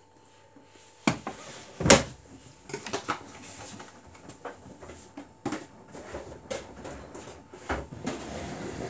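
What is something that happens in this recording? Wet laundry thumps against the drum of a front-loading washing machine.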